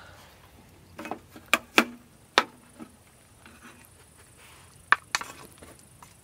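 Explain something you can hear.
A wooden spoon knocks and scrapes against a metal bowl.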